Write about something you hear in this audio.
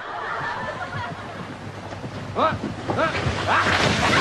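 Water rushes down a slide.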